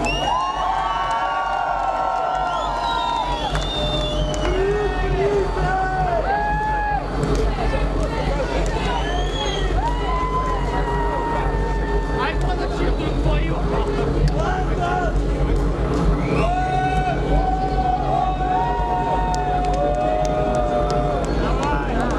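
Loud electronic dance music plays over a powerful sound system with a deep, thumping bass.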